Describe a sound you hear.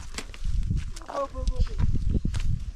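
A boy speaks to a small child.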